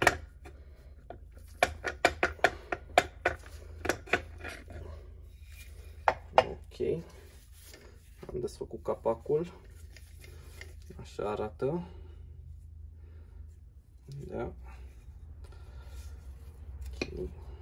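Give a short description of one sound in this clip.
Metal engine parts clink and knock together as they are handled.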